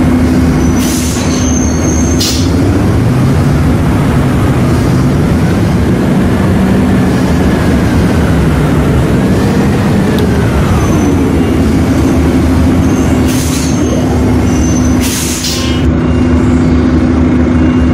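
A bus engine drones steadily, its pitch rising and falling as it changes gear.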